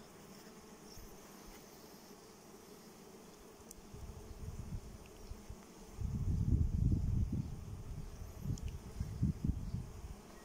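Wooden hive frames knock and scrape together.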